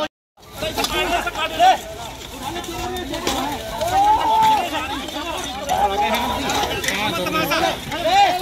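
Bricks and rubble clatter as men dig through them.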